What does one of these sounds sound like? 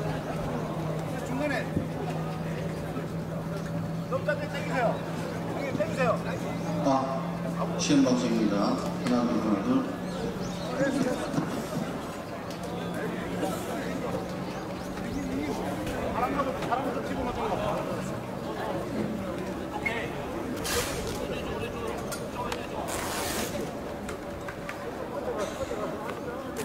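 A large tarp cover scrapes and rustles as it is dragged across a court.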